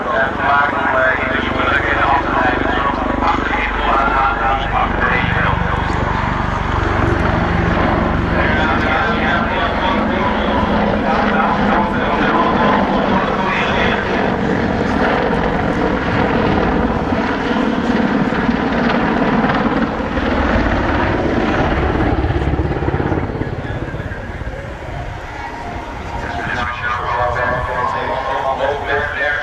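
A helicopter's rotor blades thump loudly overhead as it flies past.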